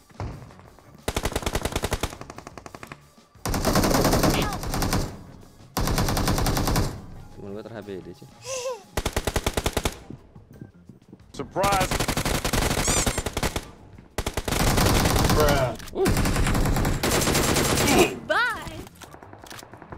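Rapid gunfire rattles in long bursts.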